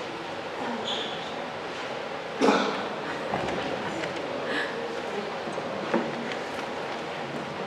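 An elderly woman speaks calmly, heard from a short distance in a lightly echoing room.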